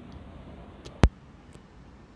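A sharp click sounds close by.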